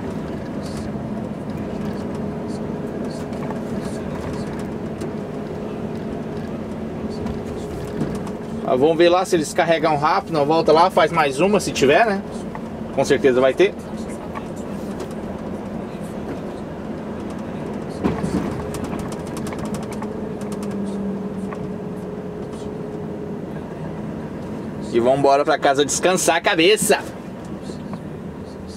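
A large vehicle's engine hums steadily from inside the cab.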